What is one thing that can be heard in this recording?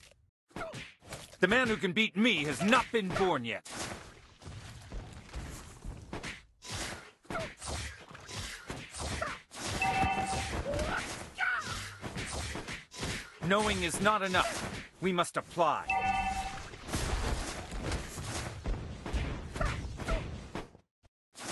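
Video game combat effects clash and whoosh in quick bursts.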